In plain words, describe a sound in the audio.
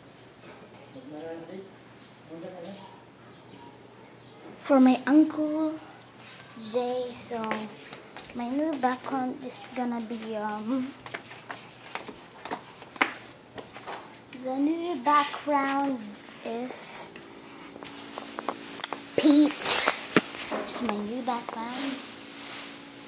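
A boy talks with animation close to a phone's microphone.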